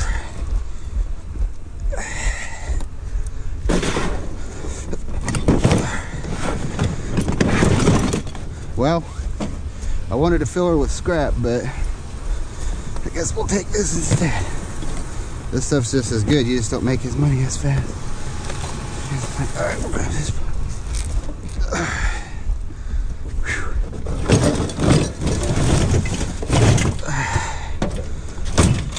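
Household items rattle and clink inside a plastic tub as it is carried.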